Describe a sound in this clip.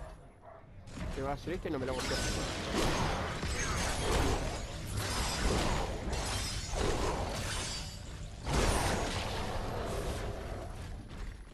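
Blows land and crash loudly in a close fight.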